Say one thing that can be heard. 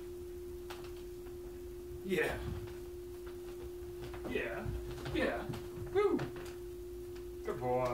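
A cat jumps and lands with a soft thud.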